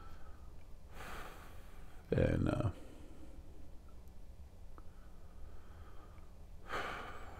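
An older man speaks calmly and close into a microphone, with long pauses.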